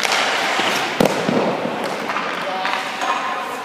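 A puck clacks on ice.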